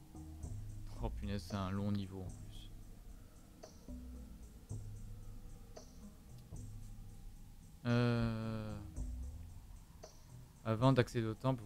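A young man talks into a close microphone, in short bursts.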